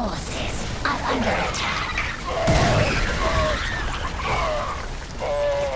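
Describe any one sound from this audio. Game gunfire and blasts crackle in a battle.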